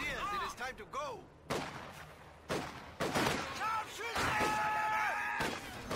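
A shell explodes with a heavy boom.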